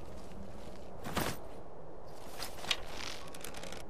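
A bowstring creaks as a bow is drawn back.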